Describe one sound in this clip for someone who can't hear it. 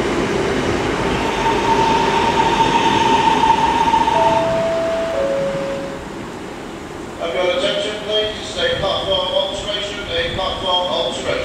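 A second diesel train rolls in, its engine humming.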